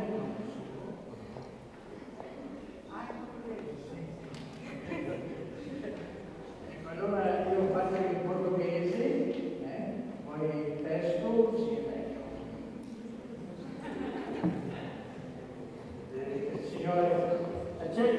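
An elderly man speaks calmly through a microphone in an echoing hall.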